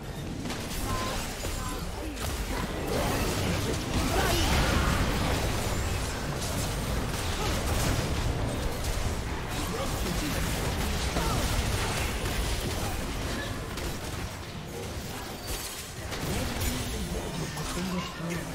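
Spell effects and attacks clash and crackle in a video game battle.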